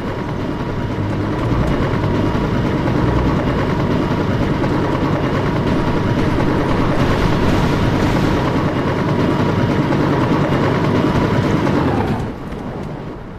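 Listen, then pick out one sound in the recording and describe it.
A helicopter engine whirs loudly close by.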